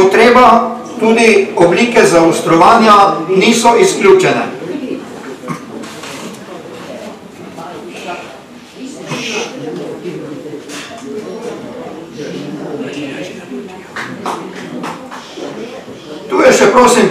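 An older man reads aloud through a microphone, heard over a loudspeaker.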